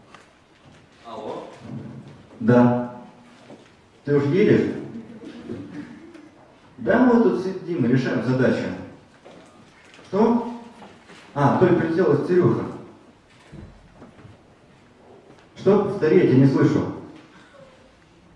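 A young man speaks into a microphone with animation, heard through loudspeakers in an echoing hall.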